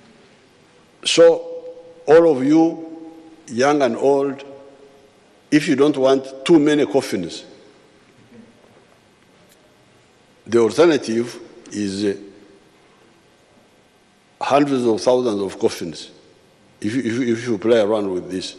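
An elderly man speaks forcefully into a microphone, in bursts with pauses, his voice echoing slightly.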